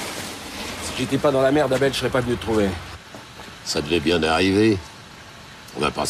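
An older man talks calmly to a driver.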